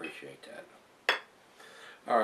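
A glass bottle knocks down on a wooden surface.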